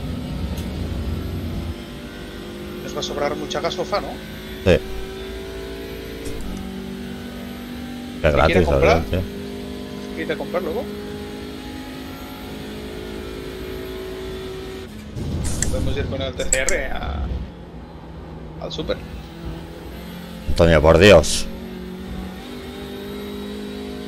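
A racing car engine hums steadily, shifting pitch as the car changes gears.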